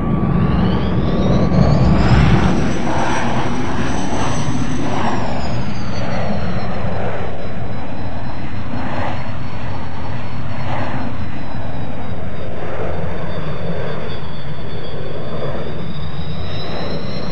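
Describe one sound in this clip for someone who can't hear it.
A jet engine roars steadily with a high whine that rises, then drops and settles.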